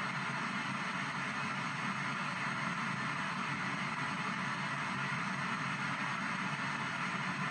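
A radio sweeps through stations, giving out a steady hiss of static from its small speaker.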